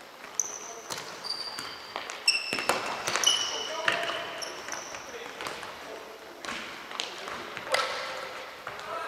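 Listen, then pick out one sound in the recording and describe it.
A ball thumps as players kick it.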